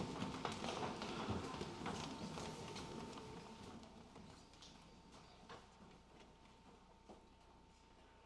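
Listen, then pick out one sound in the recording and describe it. Many footsteps shuffle and thump on wooden risers in an echoing hall, then die down.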